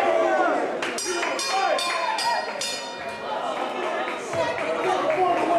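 A crowd of people chatters in the background of a busy room.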